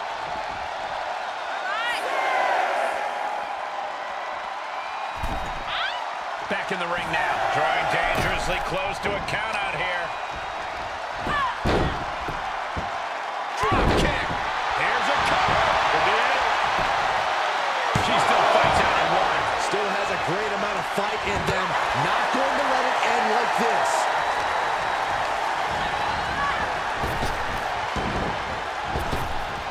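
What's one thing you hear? A large crowd cheers in a big arena.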